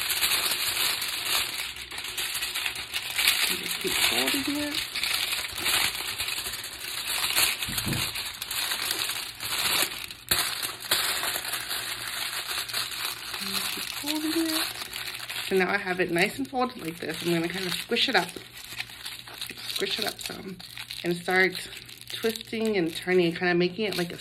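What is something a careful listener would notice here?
Aluminium foil crinkles and rustles loudly close by.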